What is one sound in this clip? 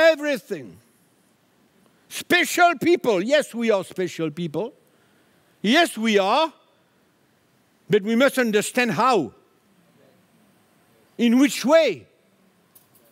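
An older man speaks with emphasis through a microphone, in short bursts with pauses.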